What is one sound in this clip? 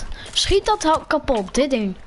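A pickaxe strikes wood.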